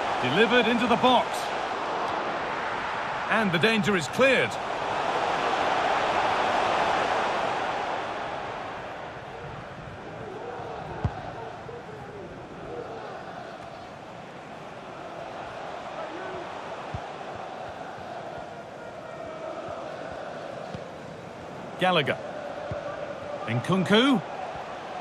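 A stadium crowd roars, swelling loudly and then settling to a steady murmur.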